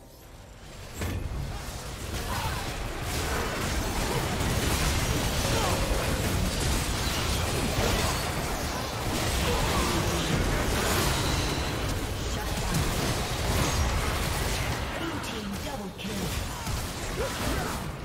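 Game spell effects whoosh, blast and crackle in a busy fight.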